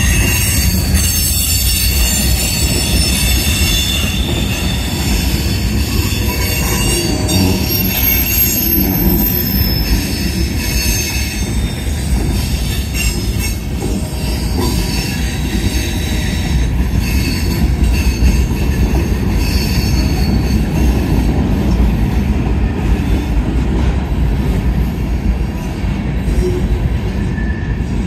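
A freight train rumbles past close by, loud and steady.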